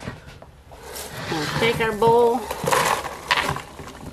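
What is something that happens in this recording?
Popcorn rustles as it is poured into a plastic tub.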